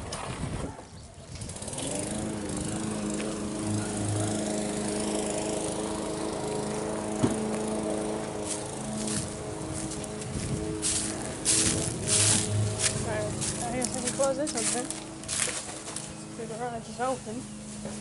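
Shoes scuff and tap on concrete.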